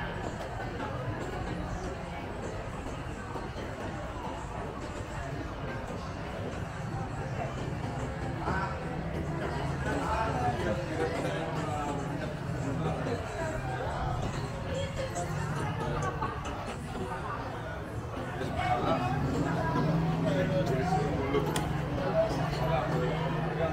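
Men and women chatter nearby outdoors, their voices mixed.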